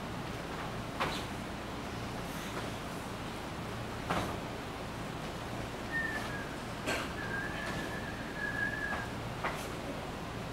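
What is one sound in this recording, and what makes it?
A martial arts uniform snaps sharply with quick punches and kicks.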